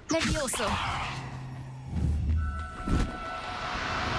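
A magic spell bursts with a bright whoosh.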